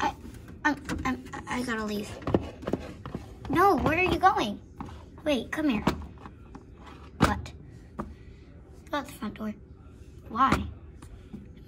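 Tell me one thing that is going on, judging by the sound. Plastic toy horses tap and clatter on a hard floor.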